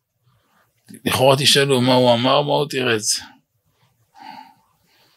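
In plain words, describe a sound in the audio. An elderly man speaks calmly into a microphone close by.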